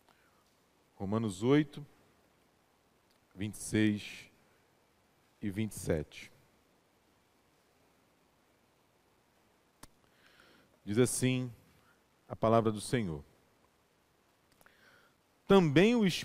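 A young man speaks slowly and calmly into a microphone, with pauses between phrases, in an echoing hall.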